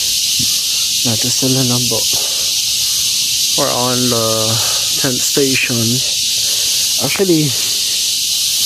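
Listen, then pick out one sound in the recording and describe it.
A young man talks casually close to the microphone.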